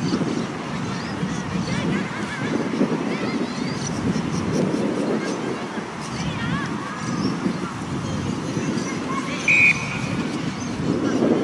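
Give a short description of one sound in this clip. Young women shout to each other across an open field in the distance.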